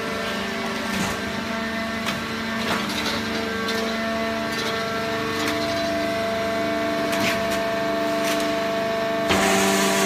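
Metal parts of a baling press clank now and then.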